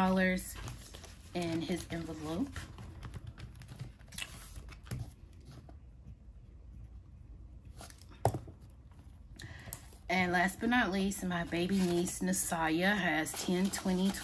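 Paper banknotes rustle and flick as they are counted.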